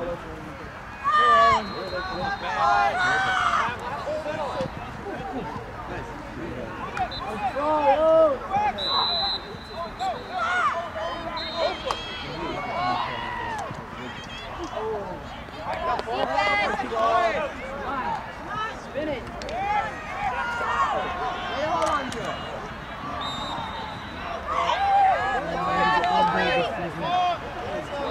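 Spectators shout and cheer from a distance outdoors.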